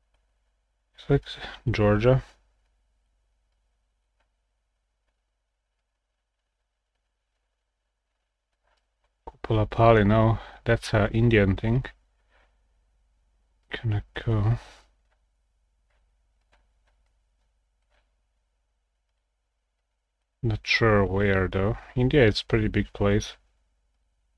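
A young man talks calmly into a close microphone, in short bursts with pauses.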